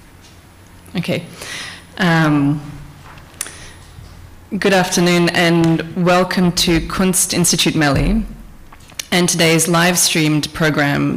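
A woman speaks calmly into a microphone, close by.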